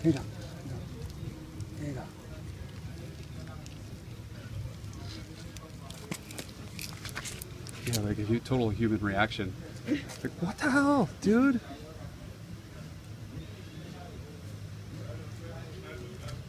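A monkey cracks peanut shells with soft, dry crunches.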